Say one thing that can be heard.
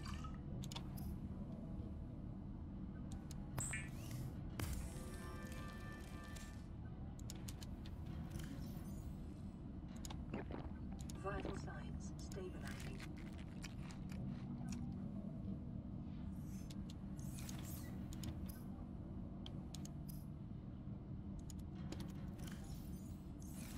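Soft clicks and beeps sound from a menu.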